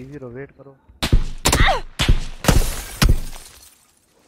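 A rifle fires several sharp shots in quick succession.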